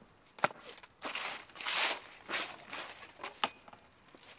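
A broom sweeps paper litter across pavement in quick rustling strokes.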